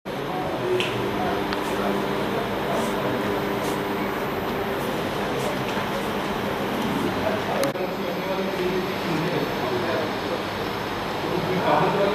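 A man speaks calmly over a microphone.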